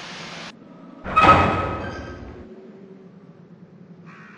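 A heavy iron gate creaks open.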